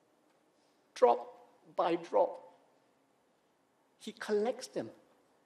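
A middle-aged man preaches forcefully into a microphone, with pauses between phrases.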